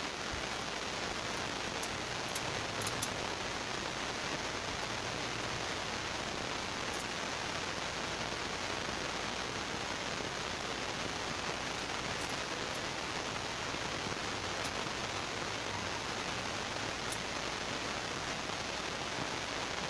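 A knife scrapes scales off a fish with rough, repeated strokes.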